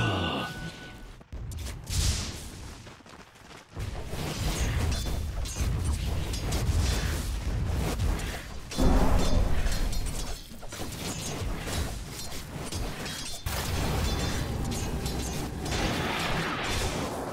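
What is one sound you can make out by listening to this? Game spell effects crackle and boom in a fast fight.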